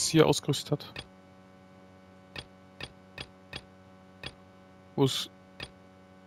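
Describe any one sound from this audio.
Soft menu clicks tick several times.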